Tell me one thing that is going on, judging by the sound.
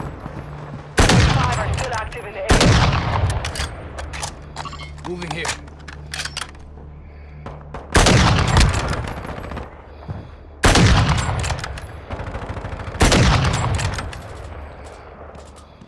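A sniper rifle fires loud, booming shots that echo and fade.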